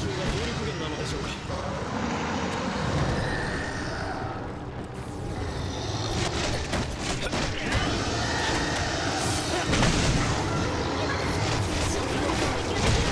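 A huge dragon roars and growls.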